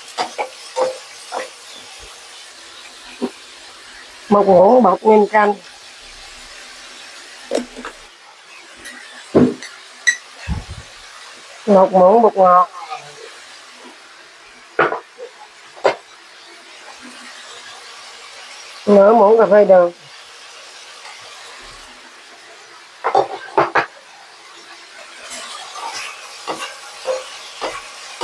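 Oil sizzles softly in a pan.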